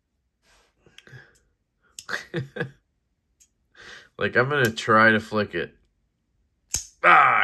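A folding knife clicks in a hand.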